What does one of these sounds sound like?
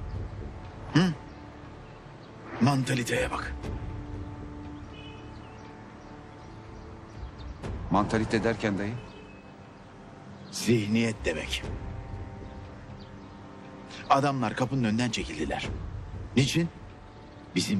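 A middle-aged man speaks tensely in a low voice, close by.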